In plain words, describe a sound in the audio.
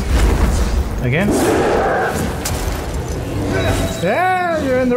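A huge creature roars and growls.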